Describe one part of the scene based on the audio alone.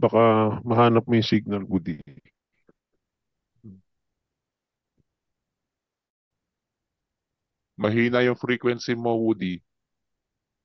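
A man speaks over an online call, in short bursts with pauses.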